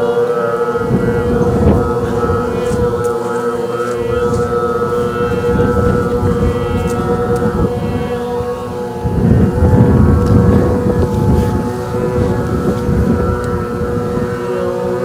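A group of men and women chant a long, steady, humming tone together.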